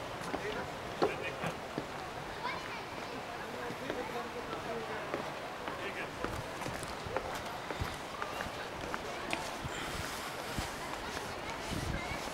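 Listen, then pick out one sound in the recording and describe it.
Footsteps thud and creak on wooden bridge planks.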